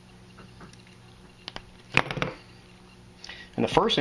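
A hand crimping tool clicks shut.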